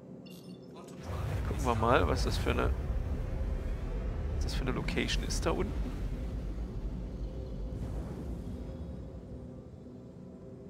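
A spacecraft engine rumbles deeply, then fades away.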